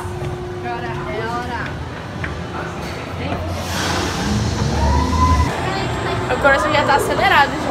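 A crowd of people chatter nearby.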